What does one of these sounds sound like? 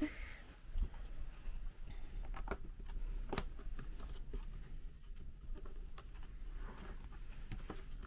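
A cardboard box slides and taps on a bedspread.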